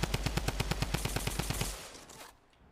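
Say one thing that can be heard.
A pickaxe strikes wood in rapid, steady blows.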